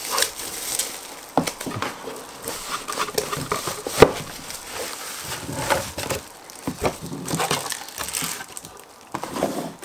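A cardboard box scrapes and thumps as it is opened.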